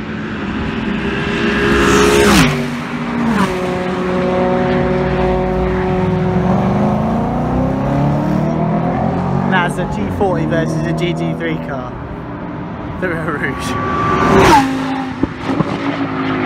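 A racing car roars past close by, its engine pitch dropping sharply as it passes.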